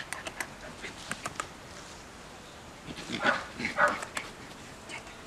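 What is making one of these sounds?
Small dogs bark sharply nearby.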